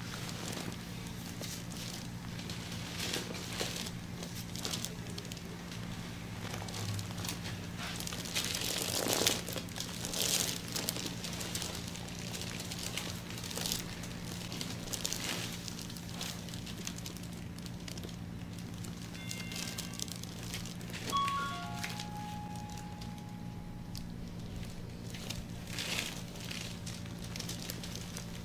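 Gloved hands rub and knead oiled skin with soft slick swishing.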